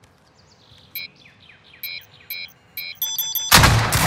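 Short electronic beeps chirp in quick succession.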